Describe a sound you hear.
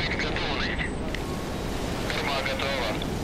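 Water gushes and splashes into the harbour.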